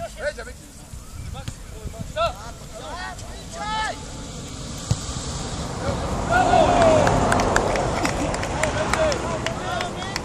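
Young men shout to one another across an open field in the distance.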